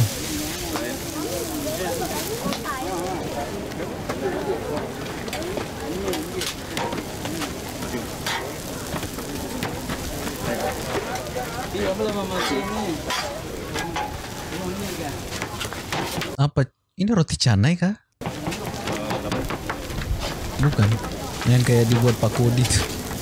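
A metal spatula scrapes on a griddle.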